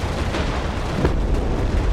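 An explosion booms with a sharp bang.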